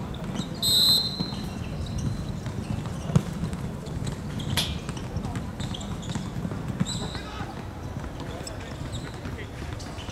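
Players' feet scuff and slap on an outdoor court.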